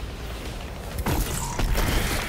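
A weapon fires a sharp electric blast.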